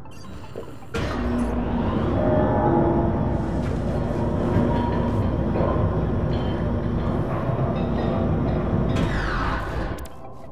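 An elevator hums and rattles loudly as it moves.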